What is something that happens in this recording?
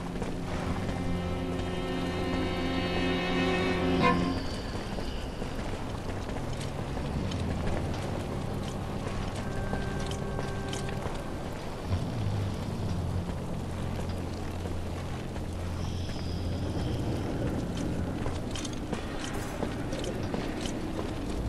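Footsteps scuff slowly on a stone floor.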